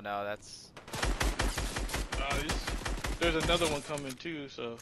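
A gun fires in quick, sharp shots.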